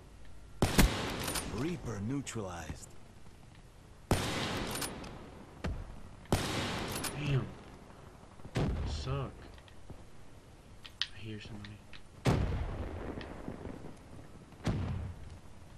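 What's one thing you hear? A rifle fires loud single shots, each followed by a short echo.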